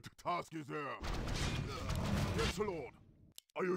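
Weapons clash and magic crackles in a fierce fight.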